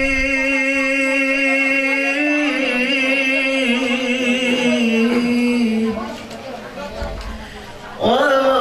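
A young man sings a long, wavering melody into a microphone, heard through a loudspeaker in a room.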